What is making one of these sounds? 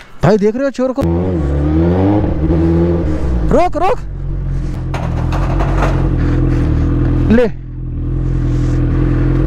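A motorcycle engine idles and revs close by.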